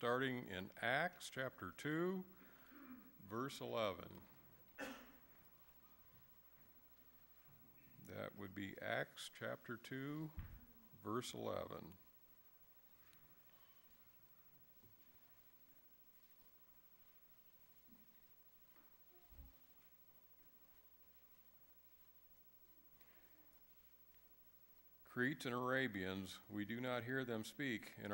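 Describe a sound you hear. A man speaks calmly into a microphone in a large echoing hall, pausing between phrases.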